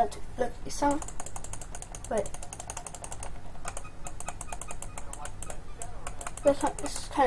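A computer mouse clicks rapidly, over and over.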